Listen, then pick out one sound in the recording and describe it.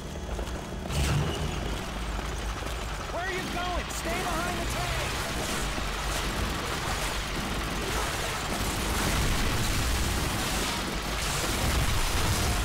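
A tank engine rumbles and clanks nearby.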